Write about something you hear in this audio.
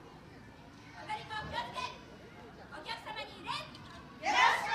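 A group of women and children shout chants together outdoors.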